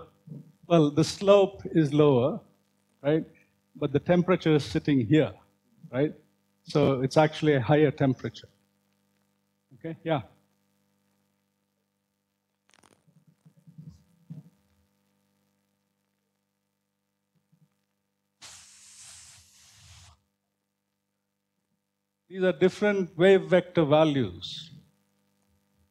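A man lectures through a microphone in a large room, speaking calmly with pauses.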